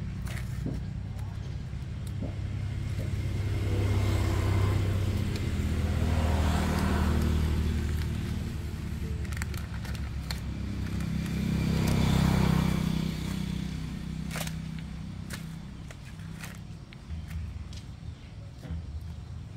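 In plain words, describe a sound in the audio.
Scissors cut through stiff cardboard with a rasping crunch.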